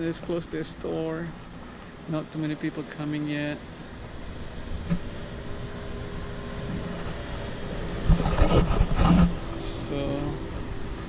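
A man speaks calmly close to the microphone, slightly muffled.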